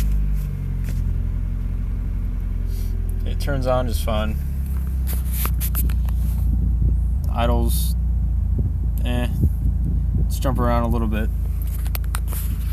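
A car engine hums and rumbles steadily from inside the car.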